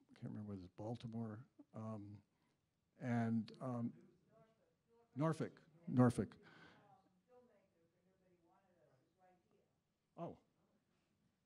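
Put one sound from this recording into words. An older man speaks with animation into a microphone, heard through a loudspeaker in a large room.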